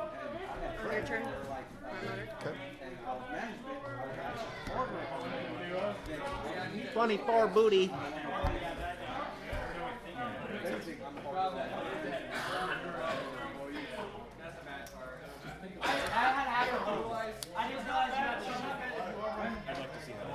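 Playing cards are shuffled and placed on a table.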